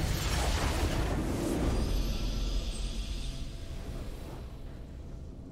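A loud triumphant game blast bursts out and slowly fades.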